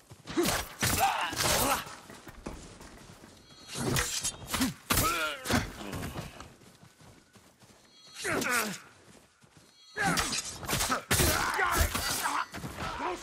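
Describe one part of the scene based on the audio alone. Swords clash and slash in a fast fight.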